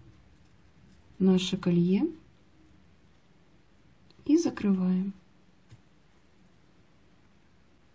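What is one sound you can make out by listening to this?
Small metal pliers click softly against a metal ring.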